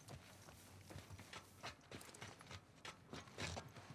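Footsteps clank softly on metal stairs.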